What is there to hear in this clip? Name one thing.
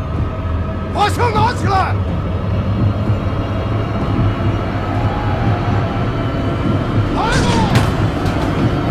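A man speaks tensely up close.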